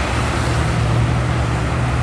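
A car engine hums as it passes close by.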